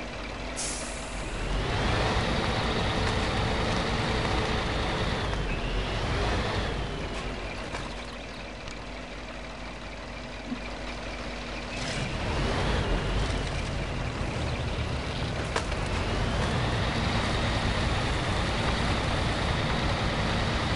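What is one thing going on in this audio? A heavy truck engine rumbles, revving up and settling down again and again.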